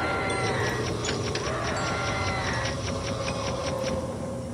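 Footsteps patter quickly on a wooden floor.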